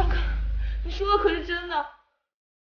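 A young woman asks a startled question close by.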